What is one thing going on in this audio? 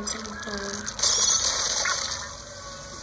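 A splashy burst goes off loudly.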